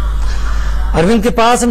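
A man speaks clearly and briskly into a microphone close by.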